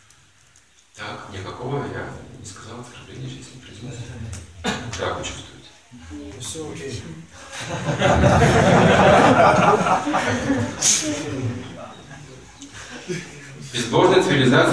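An elderly man reads aloud from a book in a chanting voice.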